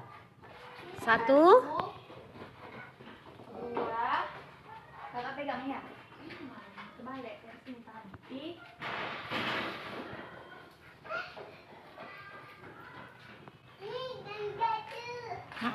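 A young girl talks and squeals nearby.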